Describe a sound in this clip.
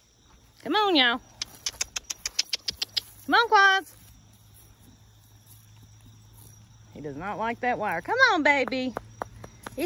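A horse tears and chews grass close by.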